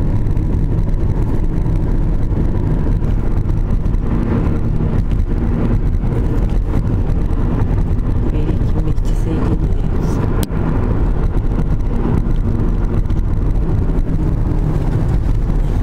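Wind roars against a moving car.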